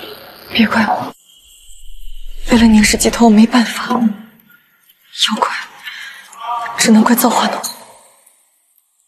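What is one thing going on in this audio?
A young woman speaks close by, tense and pleading.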